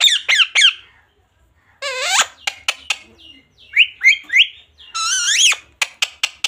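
A parrot squawks and chatters in short, shrill bursts close by.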